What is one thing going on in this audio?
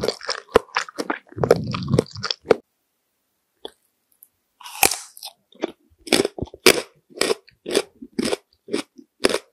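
Lips make soft, wet kissing smacks close up, over and over.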